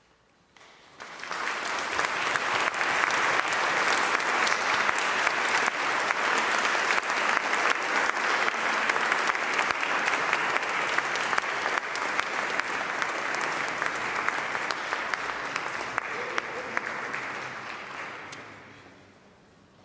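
An audience applauds loudly in a large echoing hall, then the clapping fades away.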